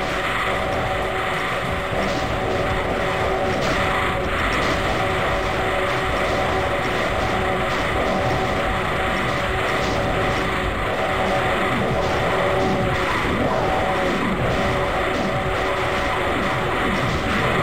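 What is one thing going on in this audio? Monsters growl and screech over one another.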